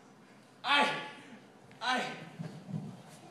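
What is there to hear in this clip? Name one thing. A young man cries out loudly twice, heard from a distance in a large hall.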